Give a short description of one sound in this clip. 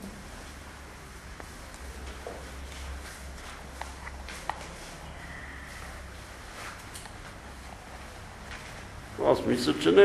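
Small objects click and rattle in a man's hands.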